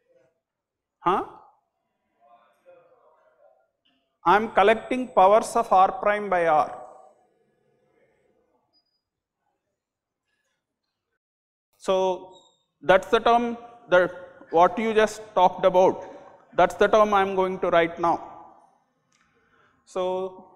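An elderly man lectures calmly through a clip-on microphone, with pauses between phrases.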